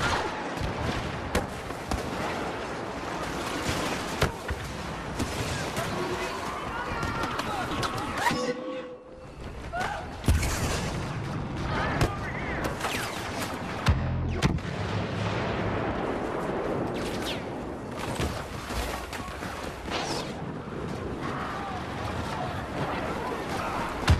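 Blaster shots crack in quick bursts.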